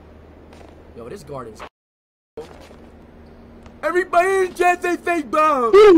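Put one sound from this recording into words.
A young man speaks loudly and excitedly into a close microphone.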